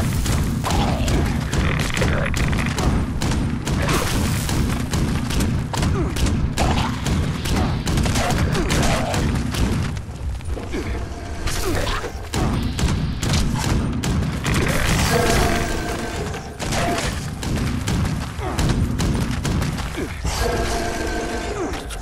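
Creatures snarl and screech.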